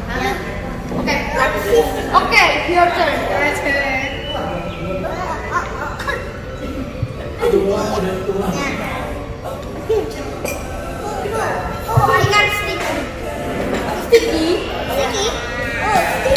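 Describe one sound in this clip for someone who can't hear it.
Young children talk and chatter excitedly close by.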